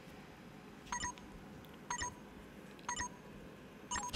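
A game countdown beeps three times, once a second.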